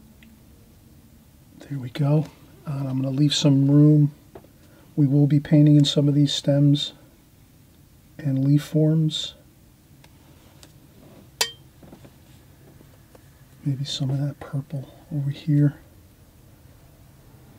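A brush dabs and strokes softly on paper.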